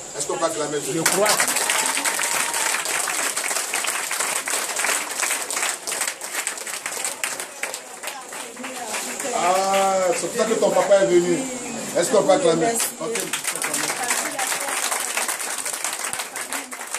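A crowd claps hands rhythmically.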